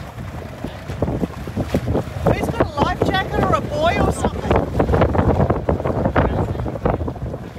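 A man calls out from a small boat nearby.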